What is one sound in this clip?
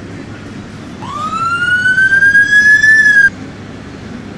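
A police siren winds up in a single rising wail.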